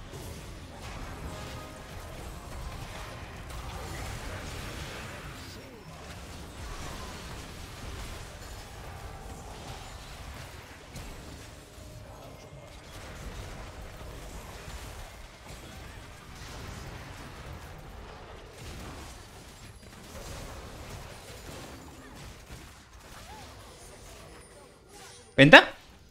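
Fantasy battle sound effects clash and crackle rapidly.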